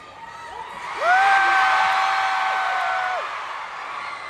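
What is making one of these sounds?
A young woman sings a long held note through a microphone.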